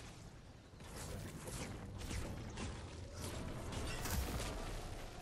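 A pickaxe strikes a wall with sharp hits.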